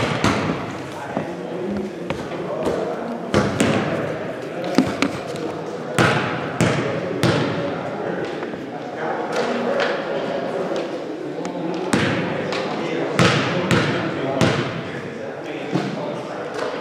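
Basketballs bounce and thud on a hard floor in a large echoing hall.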